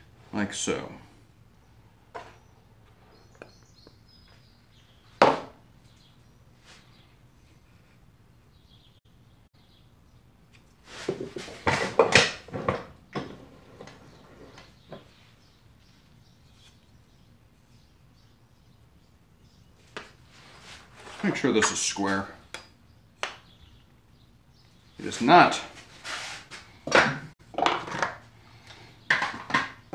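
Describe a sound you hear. Wooden blocks clack and knock against each other and a workbench.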